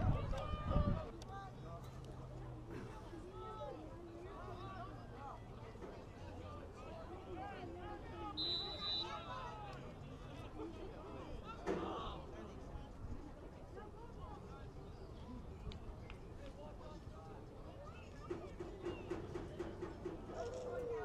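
Spectators chatter faintly in the distance.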